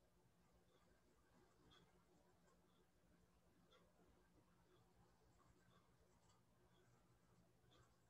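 A brush strokes softly across paper.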